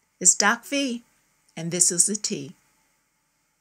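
A woman speaks warmly and close to a microphone.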